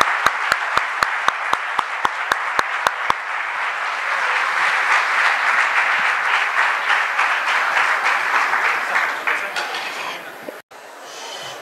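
Hands clap in steady applause.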